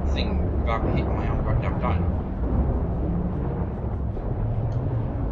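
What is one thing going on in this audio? Water rumbles in a low, muffled drone throughout.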